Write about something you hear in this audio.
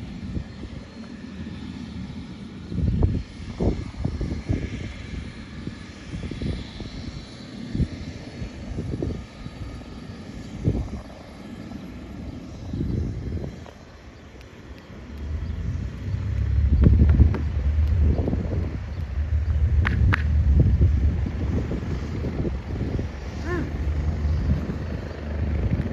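A small propeller plane's engine hums in the distance.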